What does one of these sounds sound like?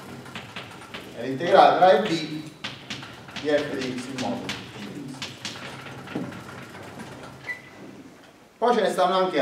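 A man lectures calmly in an echoing room.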